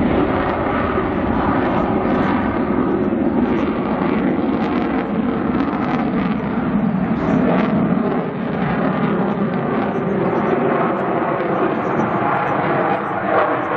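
A jet engine roars loudly overhead, rumbling steadily.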